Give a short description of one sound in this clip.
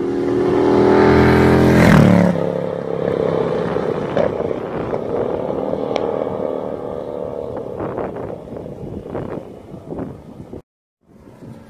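A car engine roars as a car speeds past, its pitch dropping, then fading into the distance.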